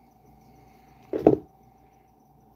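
A small object knocks sharply against something close by.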